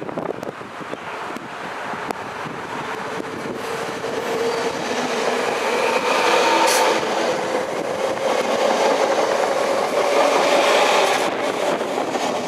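An electric train rolls in and passes close by, wheels rumbling on the rails.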